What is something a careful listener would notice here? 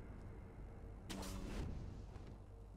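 A grappling hook whooshes through the air.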